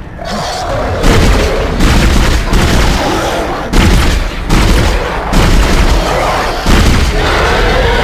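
A weapon fires in loud, repeated bursts.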